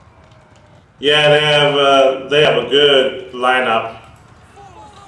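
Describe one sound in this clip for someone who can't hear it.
A young man shouts loudly and with animation, close to a microphone.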